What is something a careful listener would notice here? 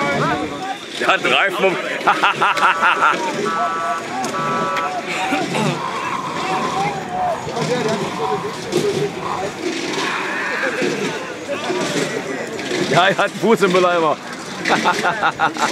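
Young men call out and cheer with animation.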